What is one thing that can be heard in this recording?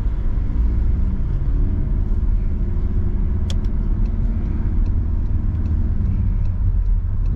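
A man speaks calmly close by inside the car.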